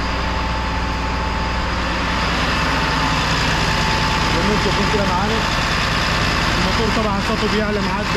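A large diesel engine idles with a steady, close rumble.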